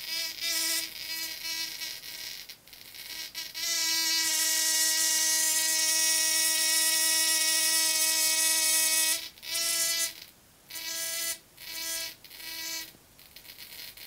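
An electric arc buzzes loudly with a steady, harsh hum, cutting in and out in bursts.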